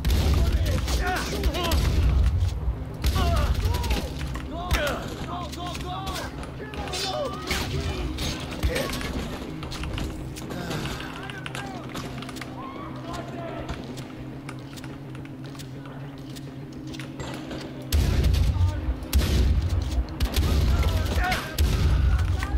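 A shotgun fires loud, booming shots.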